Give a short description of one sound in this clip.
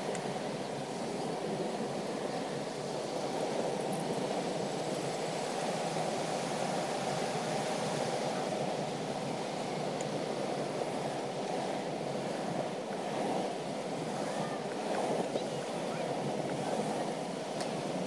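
Wheels roll steadily over asphalt.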